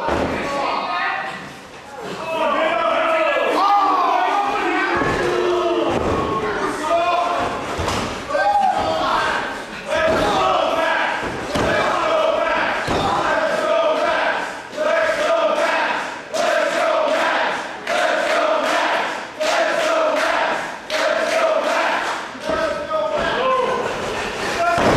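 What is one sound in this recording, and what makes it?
A crowd chants and cheers loudly in an echoing hall.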